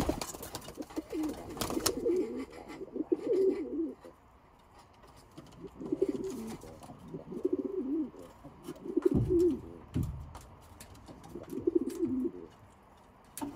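Pigeons coo softly and repeatedly nearby.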